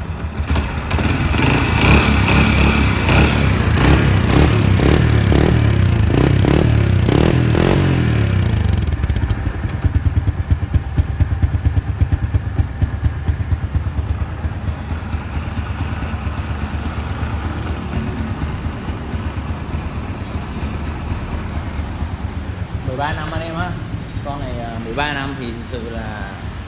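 A motorbike engine idles close by with a steady low putter.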